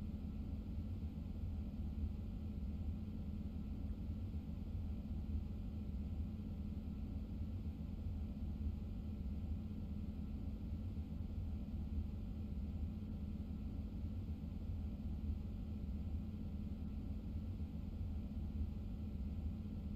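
A train's motor hums low and steady while the train stands still.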